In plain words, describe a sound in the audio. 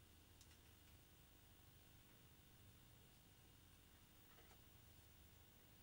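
A blade scrapes faintly against plastic.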